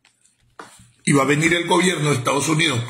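A middle-aged man speaks calmly and close to the microphone.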